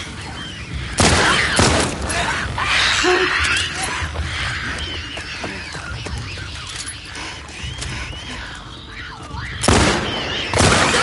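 A pistol fires loud shots.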